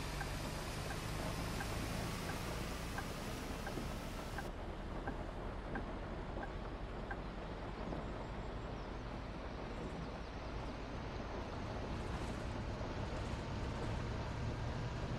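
Rain hisses steadily on the bus.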